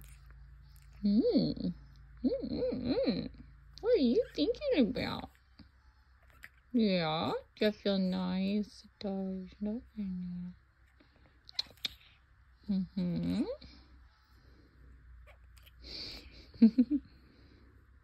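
A puppy grumbles and whines in bursts close by.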